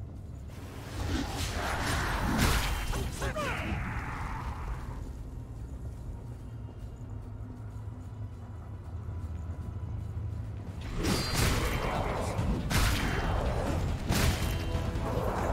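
A heavy blade strikes and clangs against metal in a fight.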